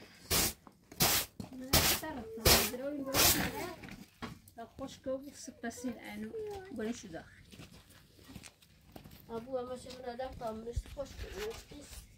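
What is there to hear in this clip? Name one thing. A straw broom sweeps across a dirt floor.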